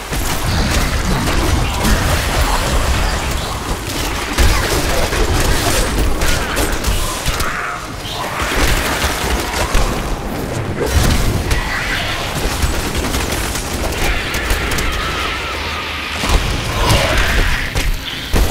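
Spells crackle and zap in a fight.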